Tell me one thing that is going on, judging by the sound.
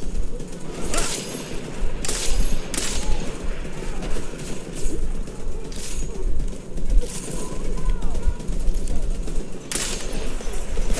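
Muffled gunshots fire in short bursts.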